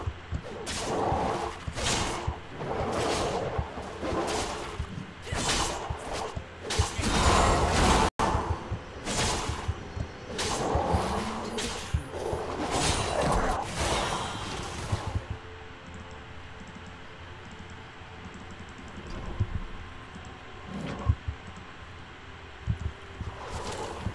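Blades slash and strike in a video game fight.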